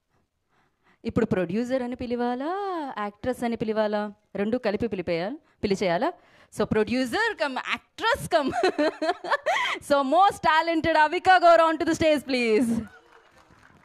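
A woman sings loudly through a loudspeaker in a large hall.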